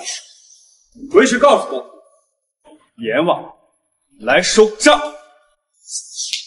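A young man speaks coldly.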